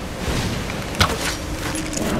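A bowstring snaps as an arrow is fired.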